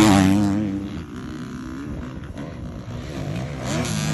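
A dirt bike engine whines far off up a hill.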